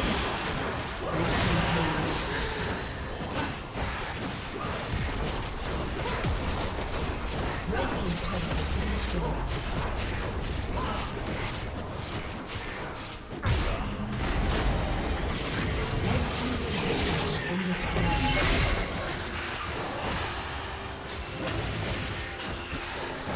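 Spell effects crackle and blast in a busy game battle.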